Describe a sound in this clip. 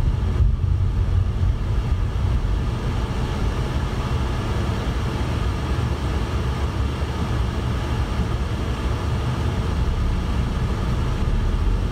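Traffic rumbles steadily on a busy road.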